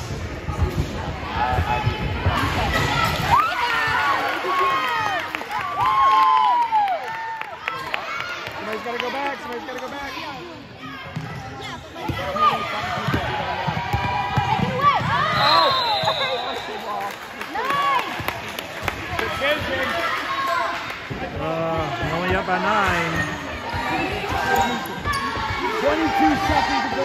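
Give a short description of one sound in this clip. Spectators near by cheer and call out in a large echoing gym.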